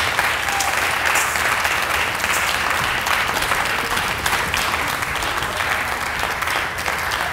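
An audience claps and applauds steadily in an echoing hall.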